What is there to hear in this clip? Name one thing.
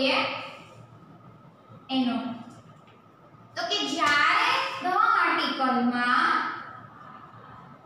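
A young woman speaks calmly, as if teaching, close to a microphone.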